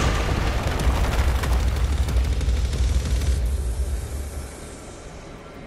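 Crystal shards shatter and crash with a loud rumbling roar that fades away.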